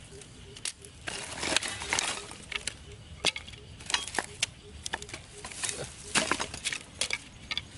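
Wooden sticks clatter against each other.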